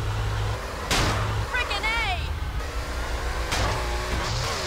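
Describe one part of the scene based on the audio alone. A car crashes into something with a loud thump.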